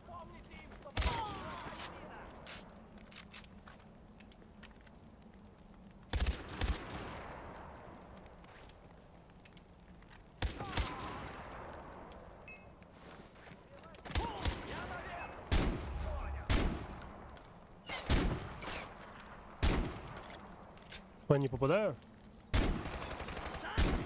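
Gunshots bang sharply, each followed by a rolling echo.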